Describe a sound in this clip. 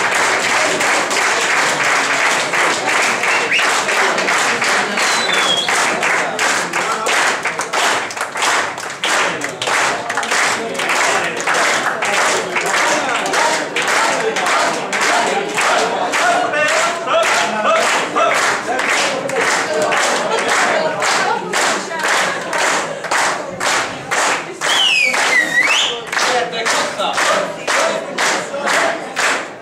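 A crowd claps hands in a steady, quick rhythm.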